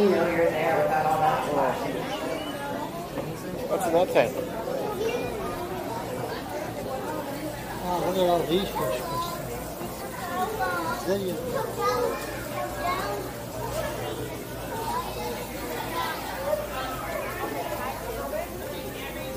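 People chatter in an echoing indoor hall.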